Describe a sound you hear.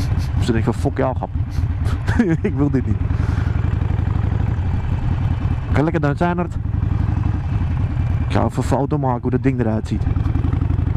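A motorcycle engine revs up and down sharply several times.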